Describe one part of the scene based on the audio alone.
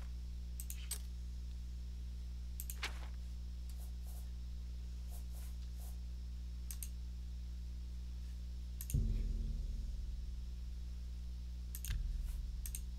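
Soft interface clicks tick as a game menu is scrolled.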